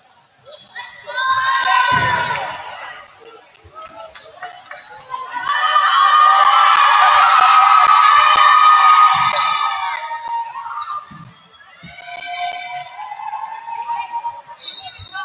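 Young women chant and shout team cheers together in a large echoing gym.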